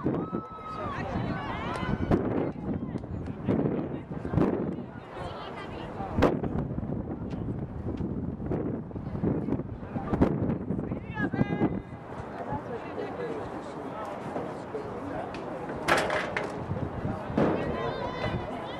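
Young women shout and call to each other across an open field.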